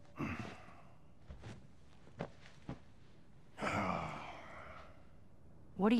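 A man speaks quietly and wearily, close by.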